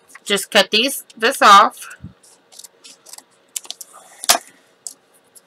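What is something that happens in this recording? Scissors snip through card.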